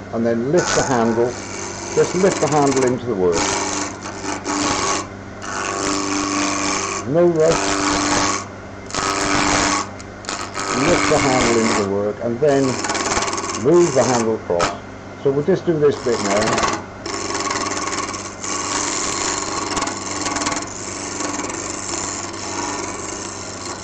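A chisel shaves spinning wood in rough, hissing bursts.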